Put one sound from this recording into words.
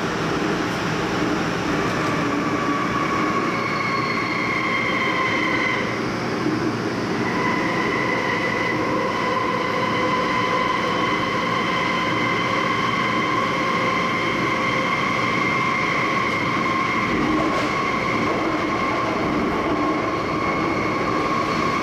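A subway train hums and rumbles steadily while moving, with a high whine from its motors.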